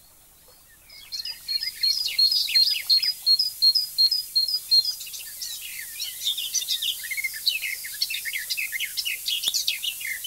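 Nestling birds chirp and beg shrilly.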